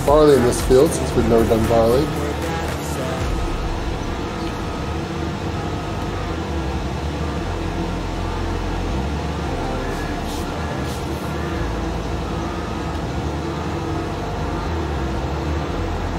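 A tractor engine drones steadily.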